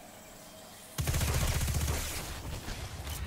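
A heavy explosion booms.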